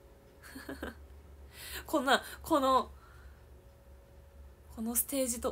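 A young woman talks animatedly and close up into a microphone.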